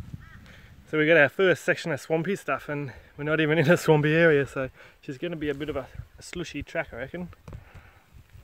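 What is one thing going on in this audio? A man talks calmly, close up.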